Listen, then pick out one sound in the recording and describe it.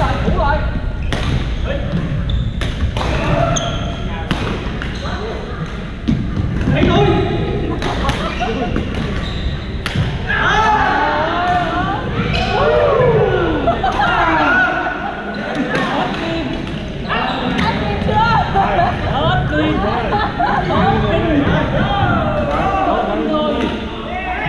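Sneakers squeak on the floor.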